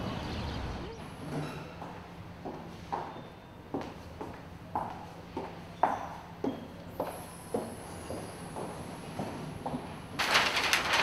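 Footsteps click on a hard floor in an echoing corridor.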